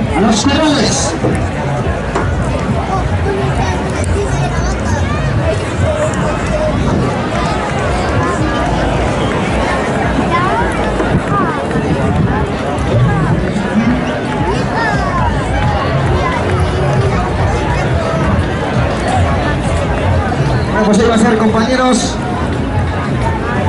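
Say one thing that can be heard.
A large crowd chatters and calls out loudly all around.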